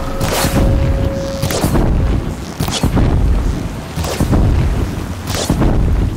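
Arrows strike a metal machine with sparking impacts.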